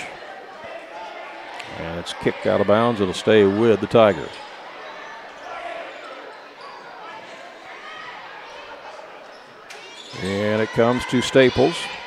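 A crowd murmurs throughout in a large echoing gym.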